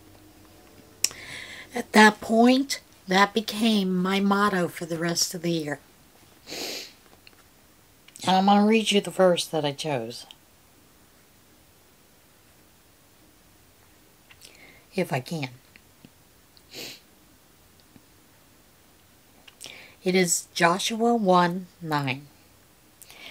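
An older woman speaks calmly and close by, in short bursts with pauses.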